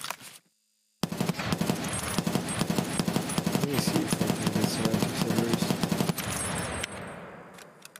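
A rifle fires rapid bursts that echo down a concrete hall.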